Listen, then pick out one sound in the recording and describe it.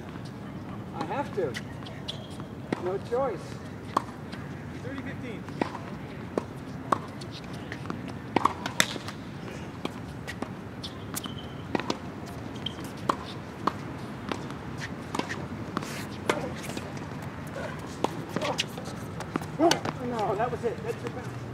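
Tennis balls are struck with rackets in a rally, outdoors.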